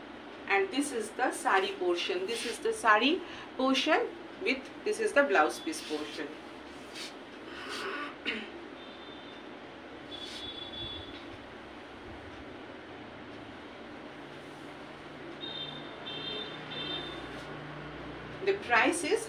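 Fabric rustles as a woman handles it.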